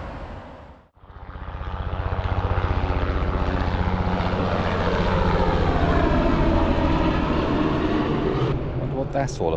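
A helicopter flies overhead with a loud thudding roar.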